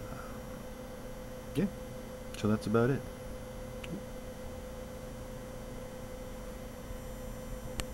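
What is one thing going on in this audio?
A small electric fan hums steadily nearby.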